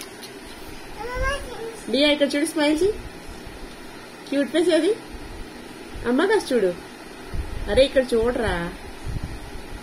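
A young girl speaks close by in a high, childish voice.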